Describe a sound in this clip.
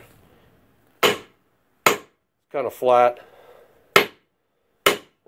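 A hammer strikes metal with sharp ringing clangs.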